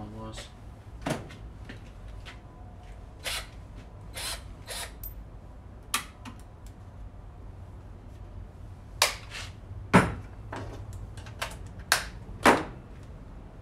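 A tool clicks and knocks on a workbench.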